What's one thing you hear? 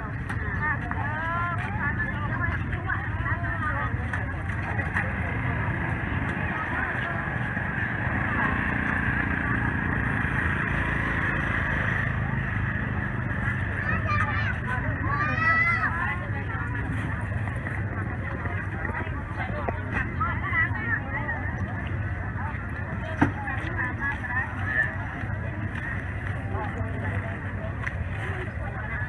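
Men and women talk and chatter at a distance outdoors.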